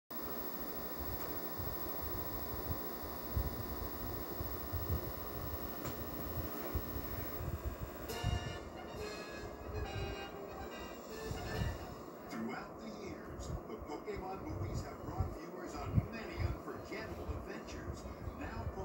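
Music plays from a television's speaker.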